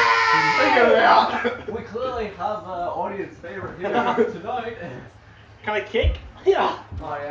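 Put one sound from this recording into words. Two young men talk.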